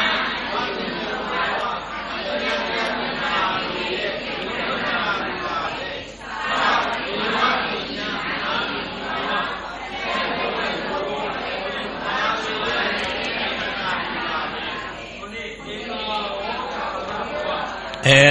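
An elderly man speaks calmly and steadily into a microphone.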